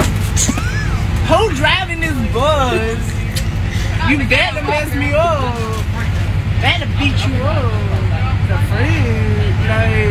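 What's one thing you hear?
A teenage boy speaks loudly in a high, drawn-out voice nearby.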